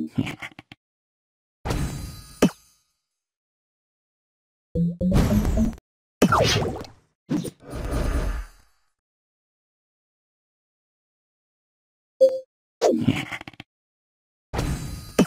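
Game sound effects pop and chime.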